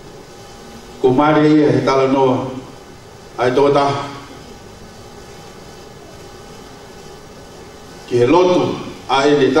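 A man speaks with feeling into a microphone, in short bursts between pauses, heard through a loudspeaker in an echoing room.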